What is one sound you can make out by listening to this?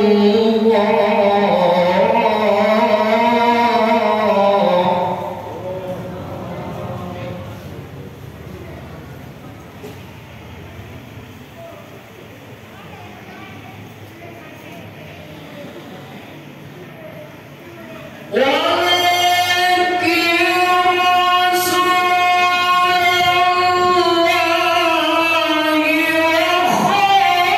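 A man sings a long, wavering melody loudly through a microphone and loudspeakers.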